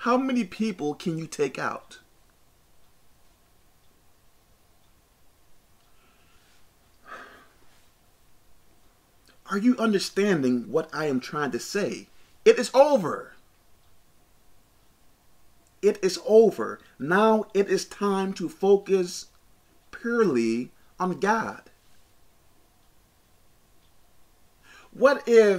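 A man talks calmly and close by, in short bursts with pauses.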